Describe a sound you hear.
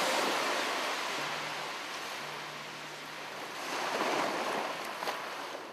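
Wind blows hard past a moving boat.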